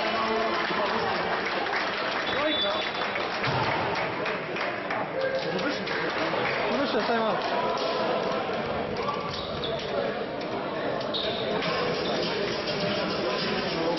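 Many men and women chatter in a large echoing hall.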